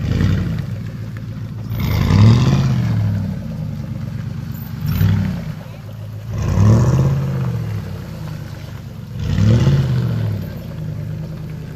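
Tyres spin and splash through thick mud.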